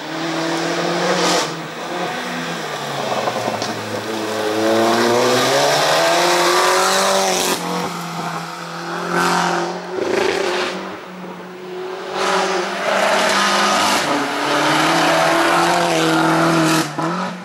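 A rally hatchback's engine revs hard at full throttle.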